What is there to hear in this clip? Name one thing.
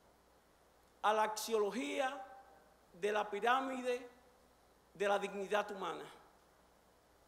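A man speaks with animation into a microphone, in short emphatic bursts.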